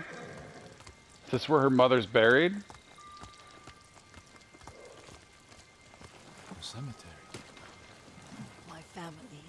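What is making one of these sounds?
Horse hooves clop slowly on stone steps.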